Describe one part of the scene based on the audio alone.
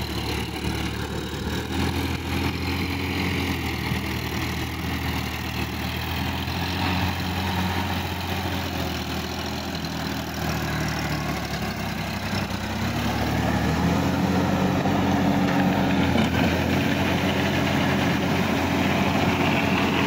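A tractor engine rumbles steadily close by and grows louder partway through.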